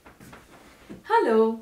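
A middle-aged woman speaks cheerfully and clearly, close to a microphone.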